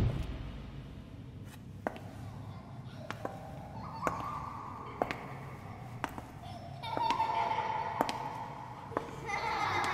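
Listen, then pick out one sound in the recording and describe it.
High heels click on a hard floor in slow, even steps.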